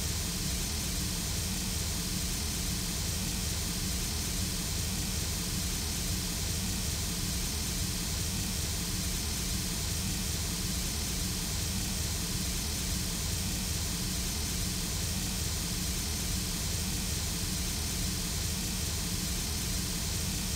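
A steam locomotive idles, hissing and rumbling steadily.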